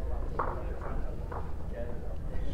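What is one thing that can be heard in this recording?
Lawn bowls knock together on a carpet.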